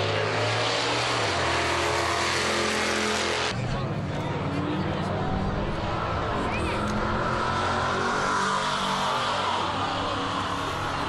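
Racing engines roar loudly and steadily at close range.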